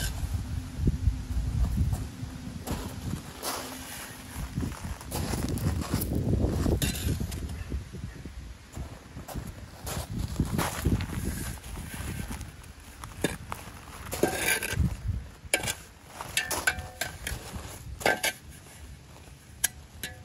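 A shovel scrapes and crunches into gravel and stones.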